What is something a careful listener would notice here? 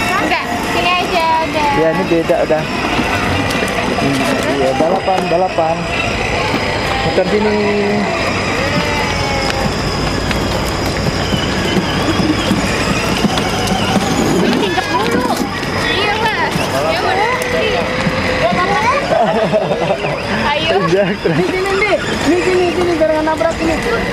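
A woman talks gently to a small child close by.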